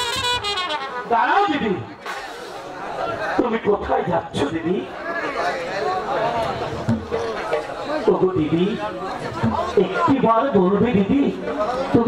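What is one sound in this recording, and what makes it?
A man speaks dramatically through a loudspeaker.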